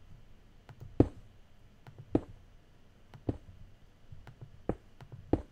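Short sharp clicks sound as blocks are broken in a video game.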